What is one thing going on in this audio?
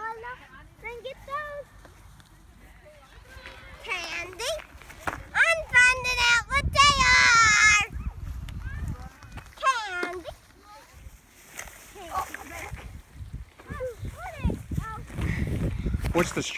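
Young children talk and shout excitedly nearby.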